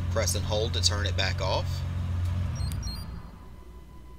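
A car engine idles nearby and then shuts off.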